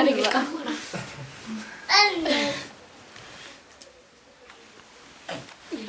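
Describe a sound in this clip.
A boy speaks close by.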